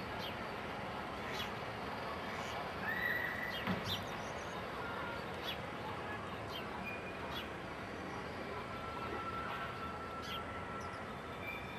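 A light wind blows steadily outdoors.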